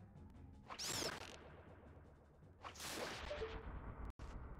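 A sword swishes sharply through the air.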